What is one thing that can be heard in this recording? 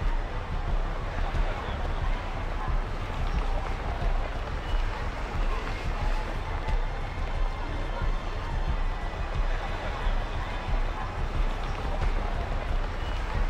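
A crowd bustles and murmurs outdoors.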